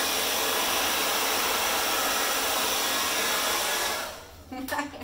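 A hair dryer blows with a steady, loud whoosh.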